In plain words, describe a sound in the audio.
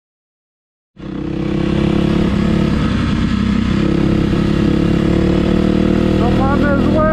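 A dirt bike engine hums loudly and steadily close by.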